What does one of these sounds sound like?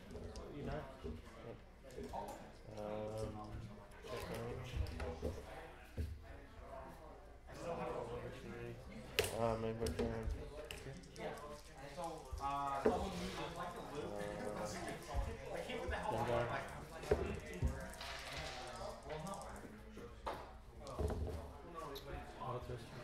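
Two men talk calmly nearby.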